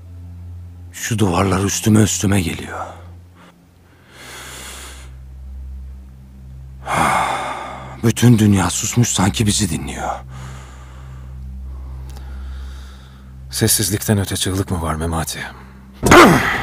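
A second man answers in a low, firm voice, close by.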